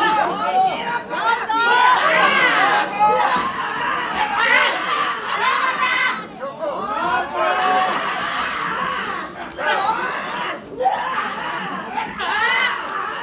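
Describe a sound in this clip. Loud slaps ring out as wrestlers chop each other's chests.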